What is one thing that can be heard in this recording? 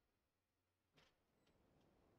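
A soft interface click sounds as a menu opens.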